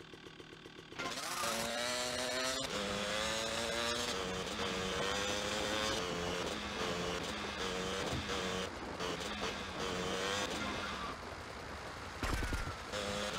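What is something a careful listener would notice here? A motorbike engine revs loudly, rising and falling in pitch as it speeds along.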